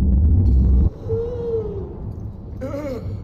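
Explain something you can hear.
A man growls angrily in a rough, low voice.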